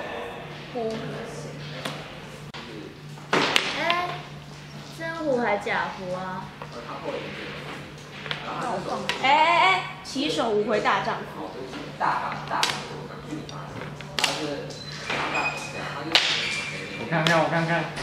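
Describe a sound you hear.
Young women talk and laugh with animation close by.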